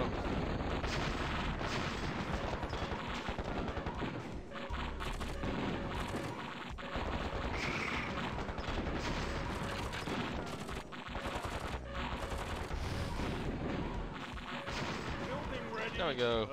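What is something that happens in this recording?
Explosions and gunfire boom and crackle in a battle.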